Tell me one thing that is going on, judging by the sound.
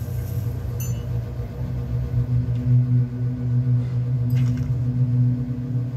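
A low, steady game soundtrack hums from a television speaker.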